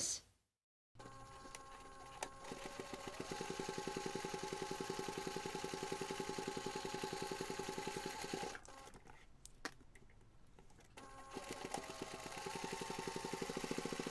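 A sewing machine stitches in fast, steady bursts.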